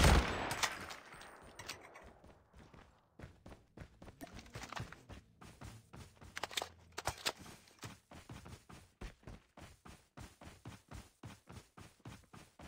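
Footsteps crunch quickly in an even rhythm.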